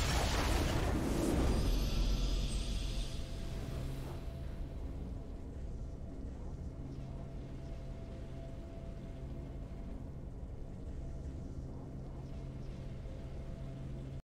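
A triumphant musical fanfare plays and holds.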